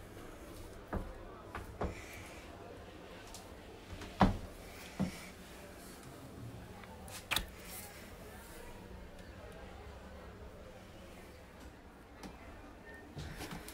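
High heels click on a wooden floor.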